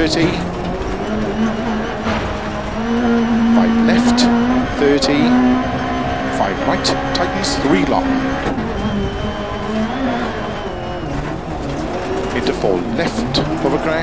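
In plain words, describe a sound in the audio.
Gravel crunches and rattles under the tyres.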